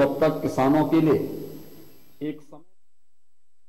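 A man speaks firmly into a microphone.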